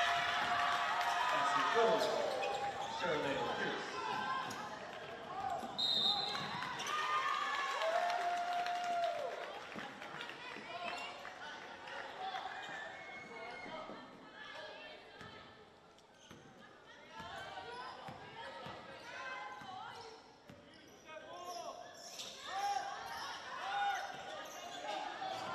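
A crowd cheers and calls out in a large echoing gym.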